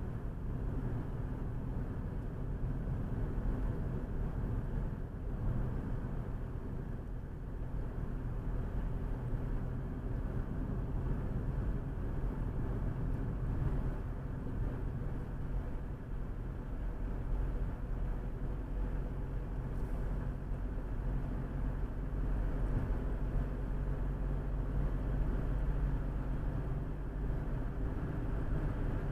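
A car engine hums steadily inside a moving car.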